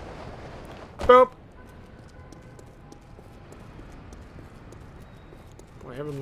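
Footsteps run across pavement.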